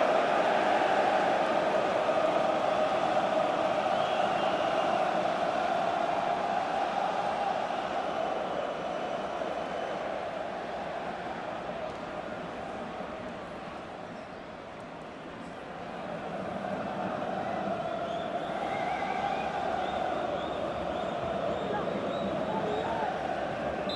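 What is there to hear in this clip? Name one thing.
A large crowd roars and cheers loudly in a stadium.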